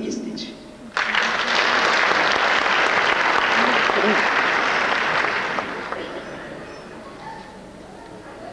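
An audience applauds loudly, then the applause fades.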